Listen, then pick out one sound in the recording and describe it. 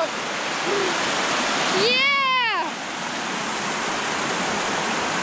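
Water rushes loudly over rock in a steady roar.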